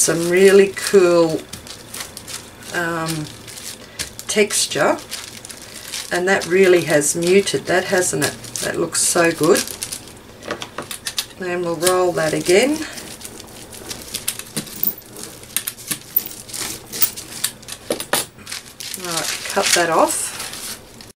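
Tissue paper rustles and crinkles under hands.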